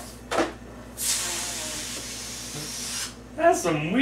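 Air hisses out of a balloon as it deflates.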